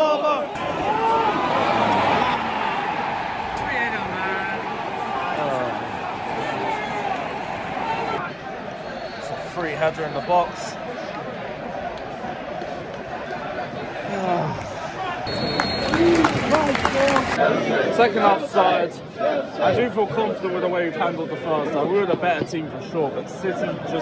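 A large stadium crowd sings and chants loudly, echoing around the stands.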